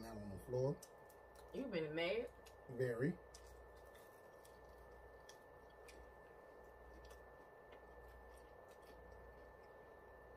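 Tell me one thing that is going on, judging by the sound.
People chew food softly.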